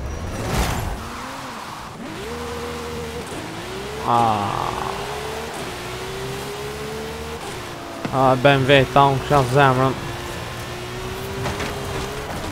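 A car engine revs up hard and drops briefly with each gear change.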